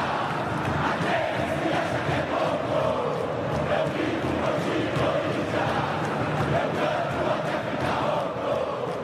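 A large crowd cheers and roars in a vast open stadium.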